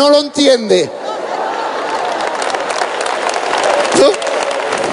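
An audience claps its hands in applause.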